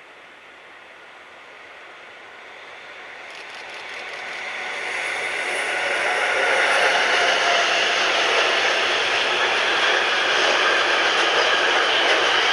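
A long freight train rumbles and clatters past along the tracks, growing louder as it nears.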